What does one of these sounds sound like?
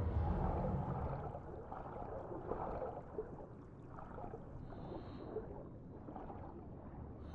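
Water churns and bubbles with a low, muffled rumble.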